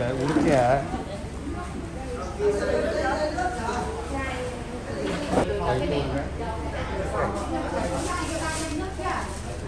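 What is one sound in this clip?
Several women chatter in a busy room.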